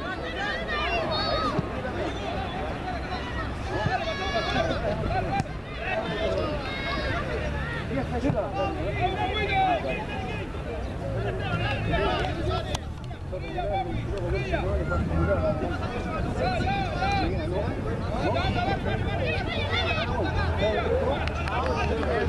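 Young boys shout and call out to each other across an open field.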